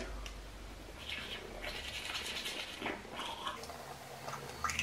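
A toothbrush scrubs against teeth.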